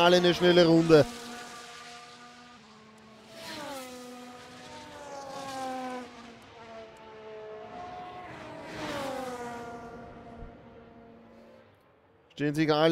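A racing car engine whines and shifts through gears as the car speeds past.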